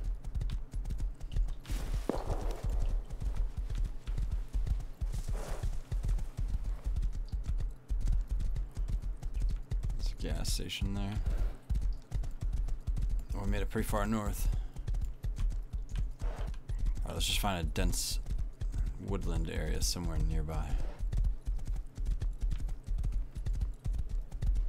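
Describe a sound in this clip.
A horse's hooves gallop steadily over the ground.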